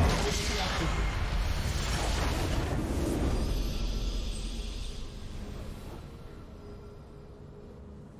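A victory fanfare plays with a triumphant swell, then fades.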